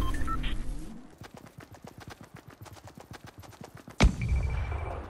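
Footsteps run quickly across grass.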